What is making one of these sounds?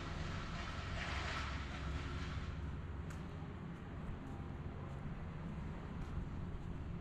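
Footsteps tap on brick paving outdoors.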